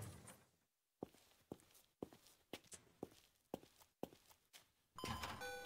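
Footsteps tap on pavement.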